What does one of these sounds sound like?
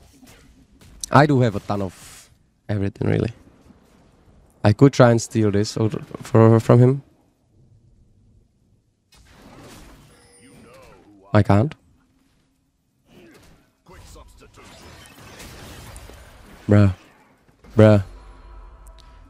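A young man talks with animation into a close microphone, in bursts.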